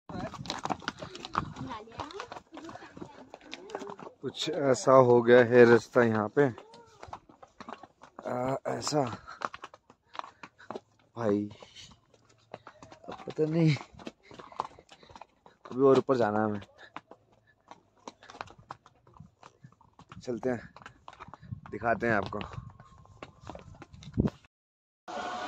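Footsteps crunch on loose stones and gravel.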